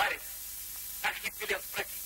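A boy speaks up eagerly, close by.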